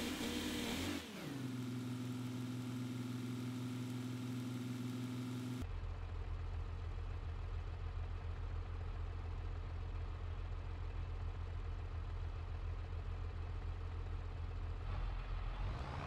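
A tractor engine idles.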